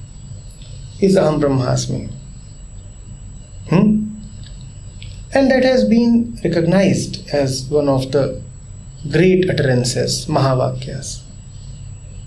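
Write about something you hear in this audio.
A man speaks calmly and thoughtfully, close to a microphone, with pauses.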